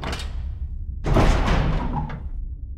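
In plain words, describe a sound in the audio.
Heavy metal doors creak and grind open.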